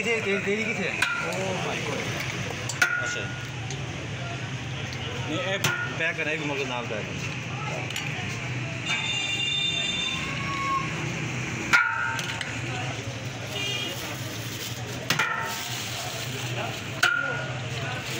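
A ladle scrapes and clinks against a metal pot.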